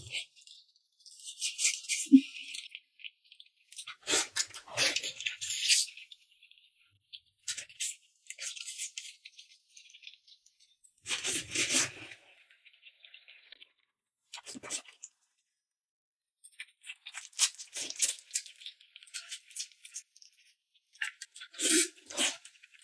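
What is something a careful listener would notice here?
A young woman slurps and chews food noisily, close up.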